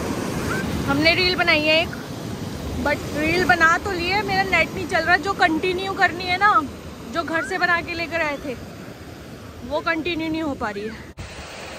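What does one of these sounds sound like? A young girl shouts and squeals excitedly nearby.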